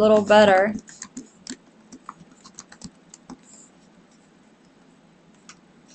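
Keys click softly on a computer keyboard.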